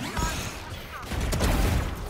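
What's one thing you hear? A rifle fires in quick bursts.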